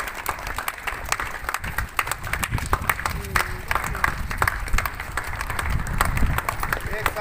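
A small crowd claps outdoors.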